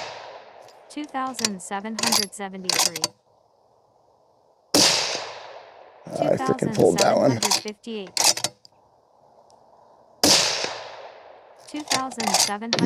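A rifle bolt clicks and clacks as it is worked.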